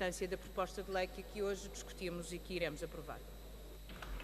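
A middle-aged woman speaks firmly into a microphone.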